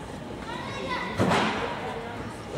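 A metal gymnastics bar rattles and thuds.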